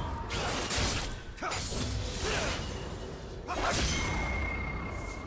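Magical spell effects whoosh and crackle in a video game.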